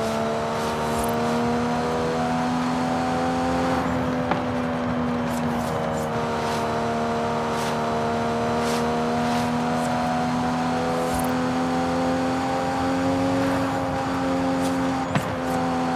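A sports car engine roars steadily at high speed, its pitch dipping and rising with gear changes.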